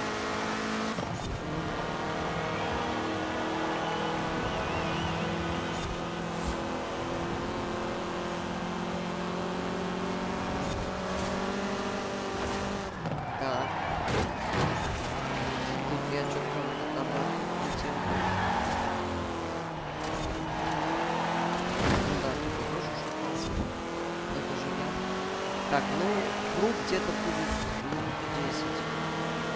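A car engine roars steadily, rising and falling in pitch as the car speeds up and brakes.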